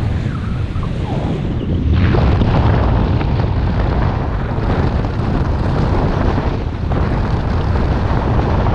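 Wind rushes and buffets loudly past a microphone, outdoors high in the air.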